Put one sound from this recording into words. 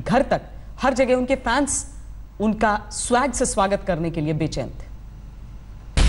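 A woman speaks clearly into a microphone, reading out news.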